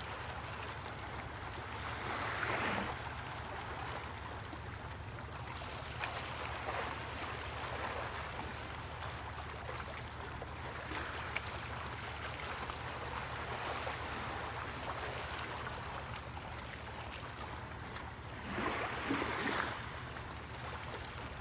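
Small waves lap softly at the shore.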